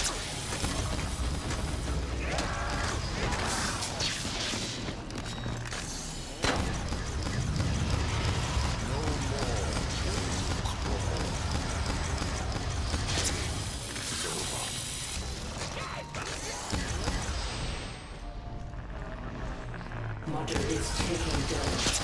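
A ray gun fires buzzing energy blasts.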